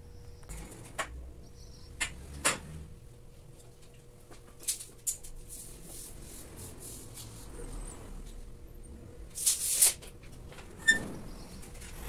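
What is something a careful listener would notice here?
Metal pipes clank and knock.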